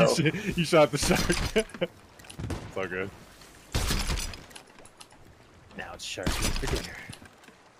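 A cannon fires with a deep boom.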